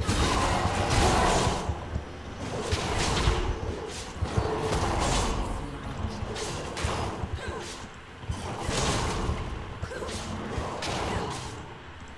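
Game combat effects whoosh and clash in quick bursts.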